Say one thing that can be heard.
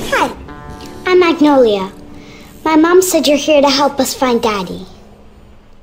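A young girl speaks calmly and clearly, close up.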